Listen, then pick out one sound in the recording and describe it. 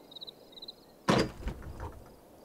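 A metal cabinet door clunks open.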